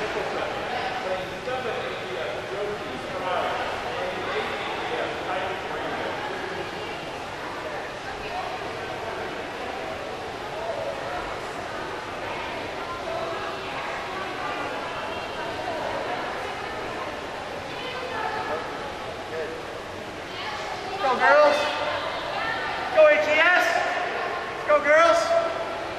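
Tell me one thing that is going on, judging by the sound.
People chatter in a large echoing hall.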